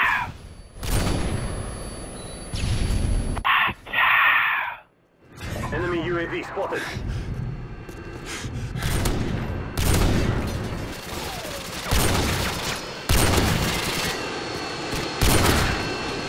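A rifle fires loud, sharp shots now and then.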